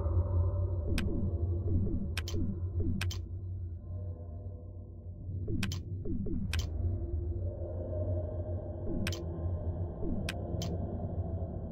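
Short sharp clicks sound as menu buttons are pressed.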